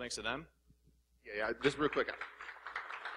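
A man speaks loudly into a microphone over a loudspeaker in a large hall.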